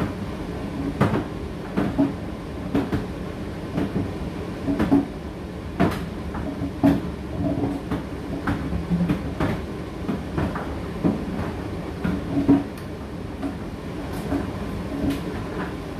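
A condenser tumble dryer hums as it runs.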